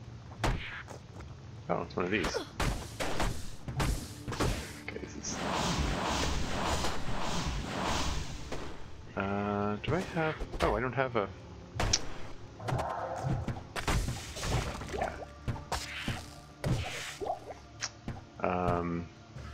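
Game spell effects crackle and whoosh.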